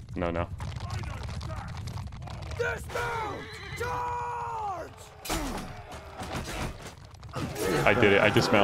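A young man talks into a headset microphone with animation.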